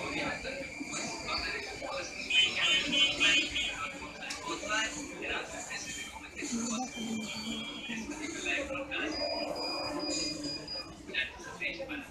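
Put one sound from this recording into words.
A marker squeaks and scratches across paper close by.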